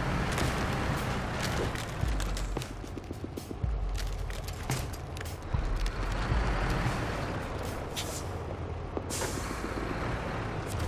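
Ice cracks and crunches under truck tyres.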